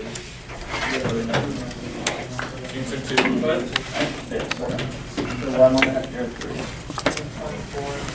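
Playing cards rustle and slide against each other in someone's hands.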